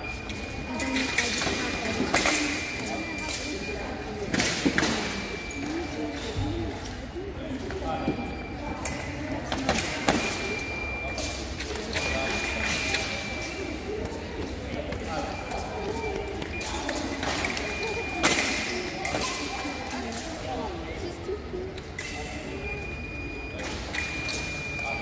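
Fencing blades clash and scrape sharply.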